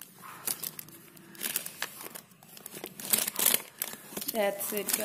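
Plastic packets crinkle and rustle as a hand rummages through them.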